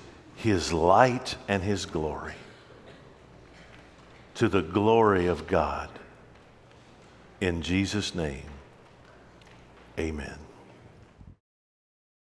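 An older man speaks calmly through a microphone in a large echoing room.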